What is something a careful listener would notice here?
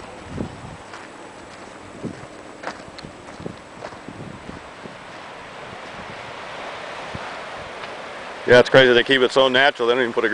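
Waves wash softly against rocks below.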